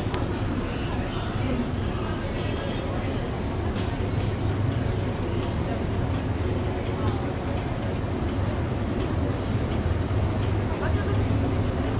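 An escalator hums and rumbles steadily as it moves.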